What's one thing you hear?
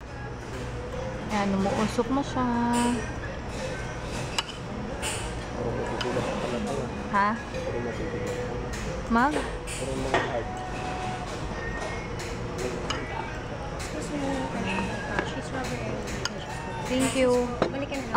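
A metal fork scrapes and clinks against a ceramic dish.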